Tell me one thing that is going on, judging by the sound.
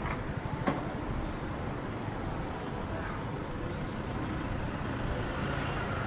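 A pickup truck drives toward and passes close by.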